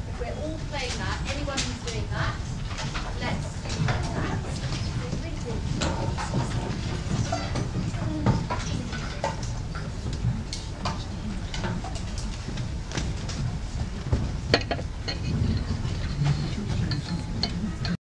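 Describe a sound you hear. A crowd of children and adults chatters and murmurs in a large echoing hall.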